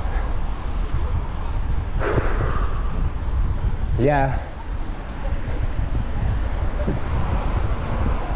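Wind rushes loudly past, blustering steadily.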